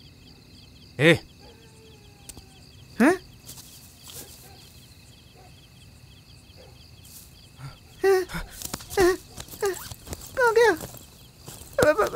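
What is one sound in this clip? A man speaks in short, tense bursts nearby.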